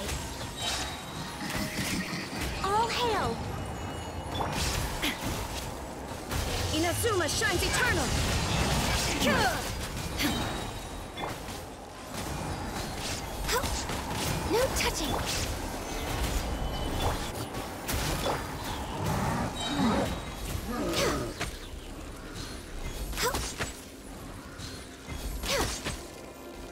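Magic blasts and ice attacks crash and shatter in quick bursts.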